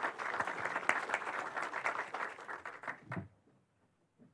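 A crowd applauds in a large room.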